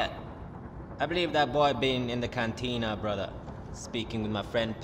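A man speaks calmly and in a low voice, close by.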